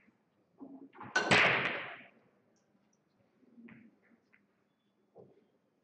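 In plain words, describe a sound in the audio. Billiard balls clack together as they are racked on a pool table.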